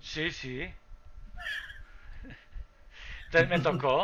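A woman laughs over an online call.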